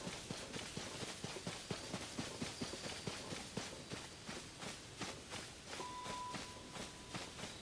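Footsteps swish quickly through grass.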